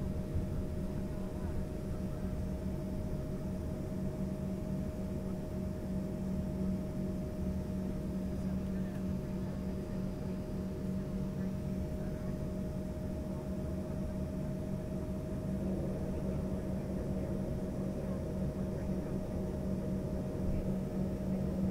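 Aircraft wheels rumble over the taxiway.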